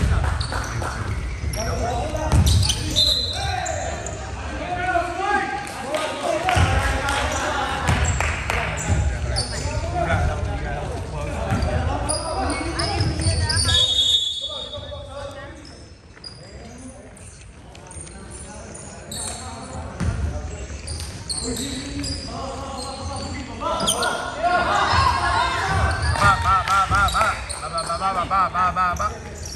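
Men shout and call out in a large echoing gym.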